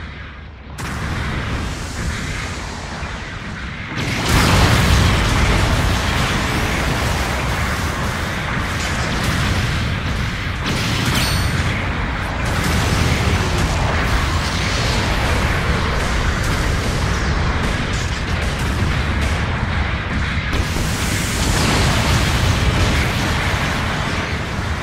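A robot's thrusters roar steadily as it flies.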